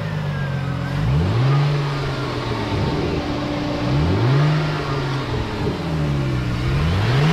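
A V6 car engine is revved in short blips.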